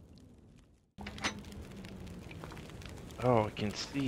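A fire crackles and hisses in a stove.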